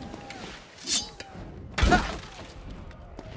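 A sword swings and clangs in a video game fight.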